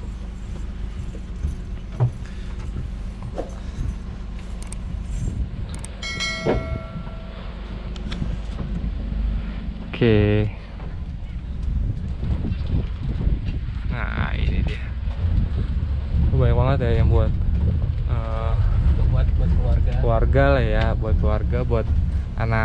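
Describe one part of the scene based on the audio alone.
A small vehicle's engine rumbles steadily while driving.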